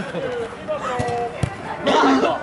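A foot kicks a ball with a thud.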